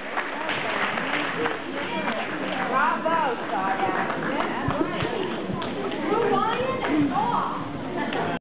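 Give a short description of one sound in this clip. A woman speaks warmly nearby.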